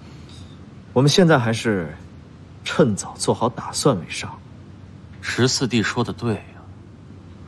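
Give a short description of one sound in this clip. Another young man speaks calmly and earnestly, close by.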